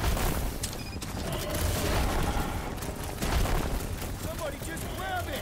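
Heavy thuds and clashes of fighting ring out with loud booming.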